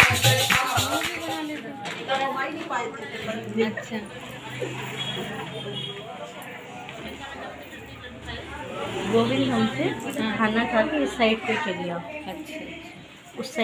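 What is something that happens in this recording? A middle-aged woman sings a devotional chant nearby.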